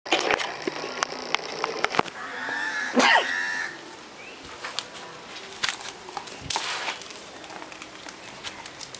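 A dog gnaws at a hard object with sharp clicks and knocks.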